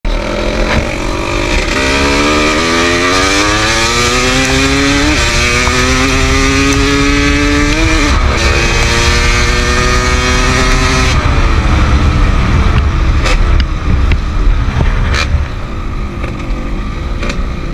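A dirt bike engine revs up and down close by, shifting through gears.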